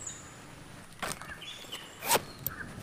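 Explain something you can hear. A zip rasps open.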